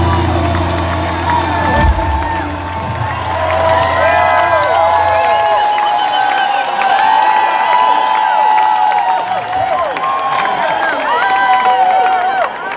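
A band plays loud live music with electric guitars and drums.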